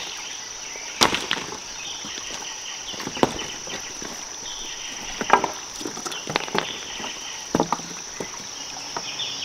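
Branches scrape and knock over stones.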